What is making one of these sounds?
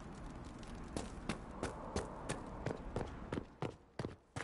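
Footsteps tap on stone steps.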